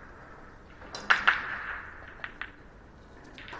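Pool balls click against each other on a table.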